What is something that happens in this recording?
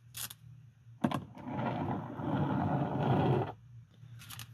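Metal handcuffs rattle and clink as they are set down on a wooden surface.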